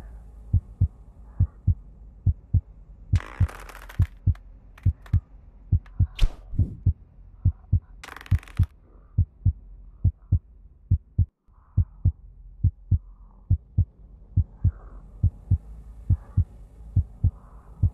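Footsteps thud steadily on a stone floor in a large echoing hall.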